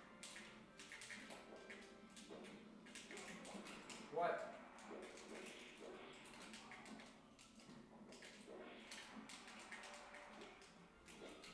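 Several young men talk casually at a distance in a room.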